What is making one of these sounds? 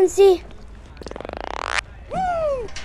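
A quick electronic tone sweeps upward in pitch.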